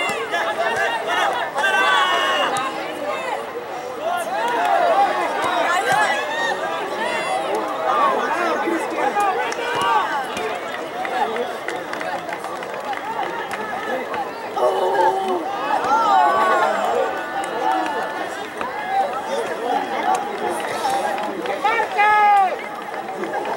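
Young men shout and call to one another across an open field.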